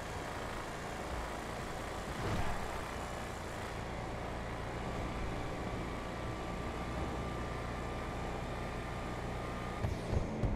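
A car engine hums steadily while driving on a highway.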